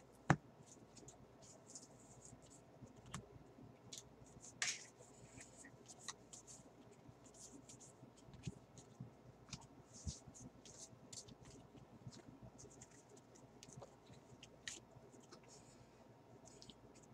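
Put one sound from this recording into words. Trading cards are flicked through by hand, with light snaps and rustles.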